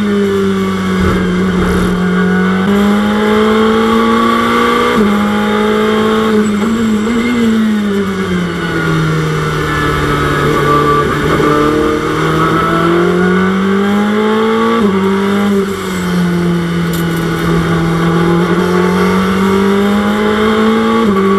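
A race car engine roars steadily, its pitch rising through each gear and dropping at every shift.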